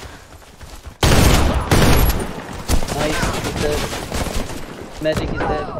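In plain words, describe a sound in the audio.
Gunfire bursts out in loud rapid shots.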